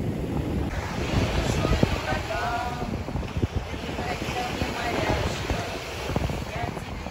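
Middle-aged women talk and laugh with animation nearby.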